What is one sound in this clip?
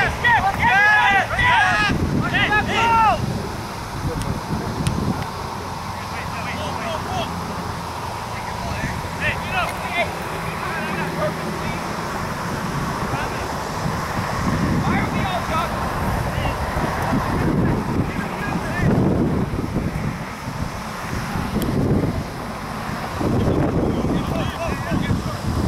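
Young men shout to each other in the distance across an open field.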